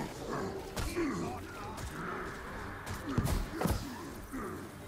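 Heavy impacts thud during a fight.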